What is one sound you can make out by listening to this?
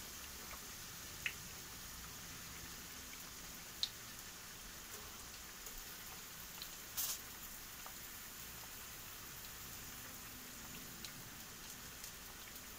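Pieces of potato drop softly into a metal pan.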